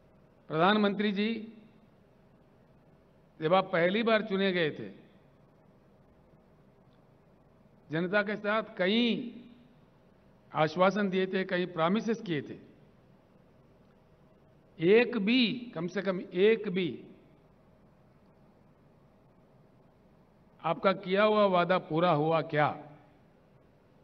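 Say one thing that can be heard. An older man speaks into a microphone in short bursts with pauses, heard through loudspeakers.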